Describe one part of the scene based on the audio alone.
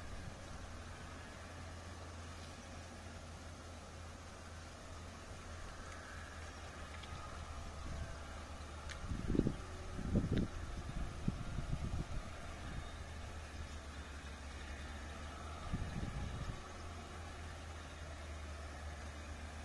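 Oil drips and trickles steadily into a pan.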